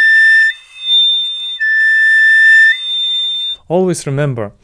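A flute plays a few high, clear sustained notes.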